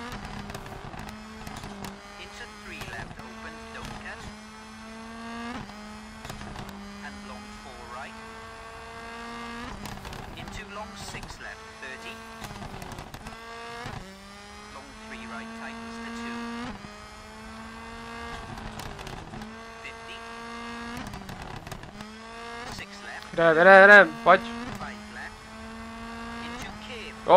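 A rally car engine revs hard, rising and dropping in pitch with each gear change.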